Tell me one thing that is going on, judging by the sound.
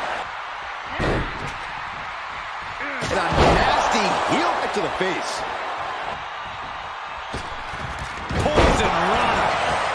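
Thuds of bodies slamming onto the ring mat ring out now and then.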